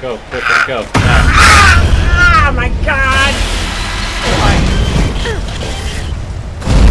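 A harsh distorted digital scream blares loudly.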